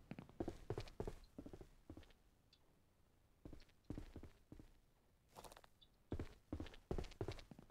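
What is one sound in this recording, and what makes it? Footsteps thump on wooden boards.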